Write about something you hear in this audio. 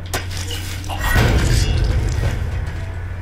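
Blows thud as a man is knocked down.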